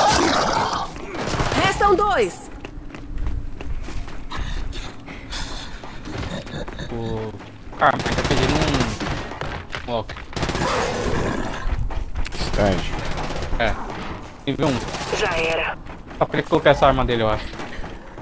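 Heavy armoured footsteps thud and clank as a soldier runs over metal and stone.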